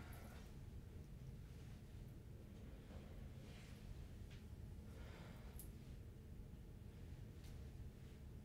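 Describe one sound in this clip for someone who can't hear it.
A towel rubs against a face.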